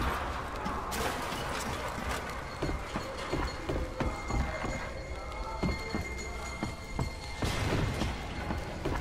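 Boots clank on the rungs of a metal ladder in a steady climbing rhythm.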